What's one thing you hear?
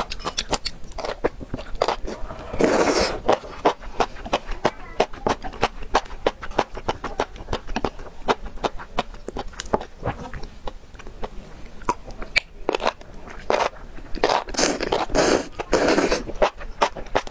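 A young woman slurps noodles loudly close to a microphone.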